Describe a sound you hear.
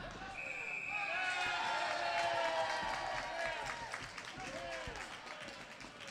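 A crowd cheers and shouts in an echoing arena.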